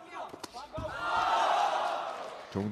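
A crowd cheers loudly in a large hall.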